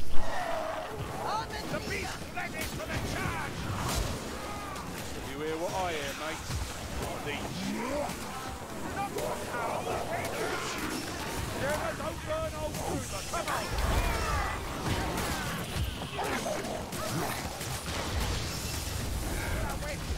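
Monsters snarl and shriek in a fight.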